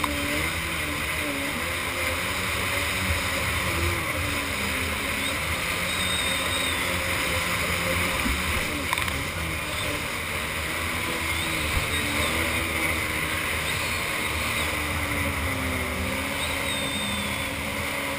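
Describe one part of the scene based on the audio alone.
A jet ski engine revs loudly, rising and falling in pitch.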